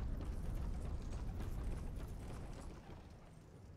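Heavy footsteps thud on wooden planks.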